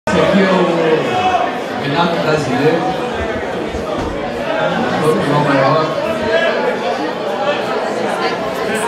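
An electric guitar plays through an amplifier.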